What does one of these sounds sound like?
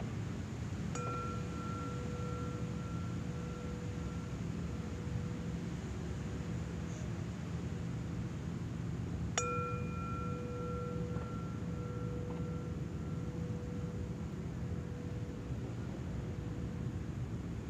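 A singing bowl is struck and rings out, slowly fading.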